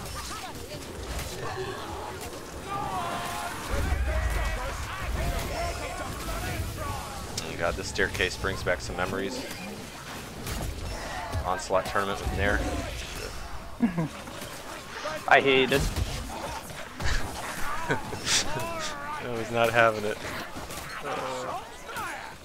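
Blades hack and slash into creatures.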